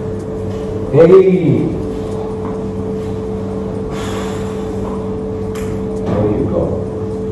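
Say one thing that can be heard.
A man speaks briefly, close by.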